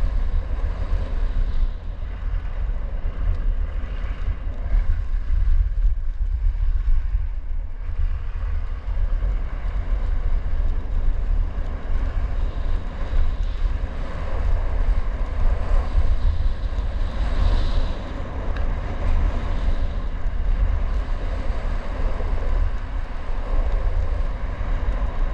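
Wind rushes and buffets loudly across a microphone.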